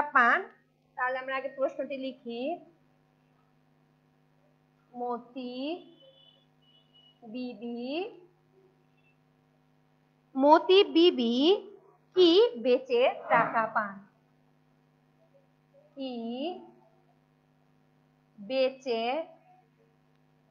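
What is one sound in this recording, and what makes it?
A woman speaks calmly and clearly, in bursts with pauses, close by.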